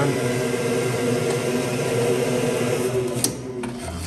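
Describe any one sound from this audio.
A cut wooden piece clicks as it is pushed out of a board.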